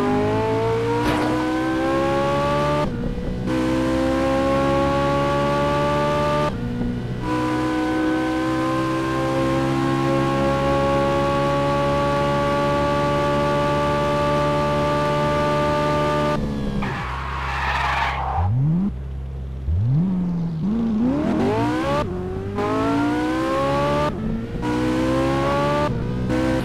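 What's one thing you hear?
A car engine revs high and shifts through gears.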